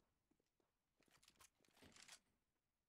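A rifle rattles as it is handled.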